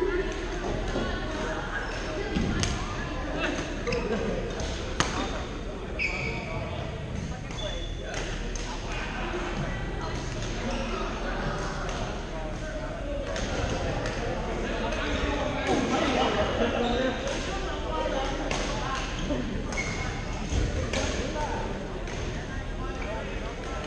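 A crowd of young men and women chatter in the background.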